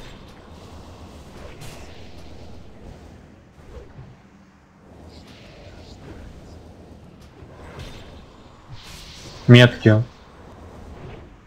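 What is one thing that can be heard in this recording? Magic spells whoosh and crackle in a battle.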